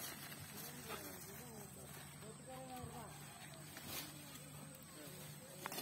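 Men talk at a distance outdoors.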